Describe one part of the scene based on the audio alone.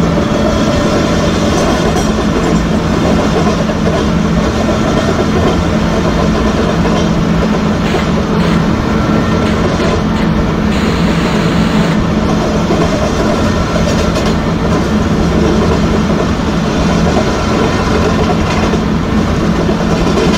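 An electric locomotive engine hums steadily.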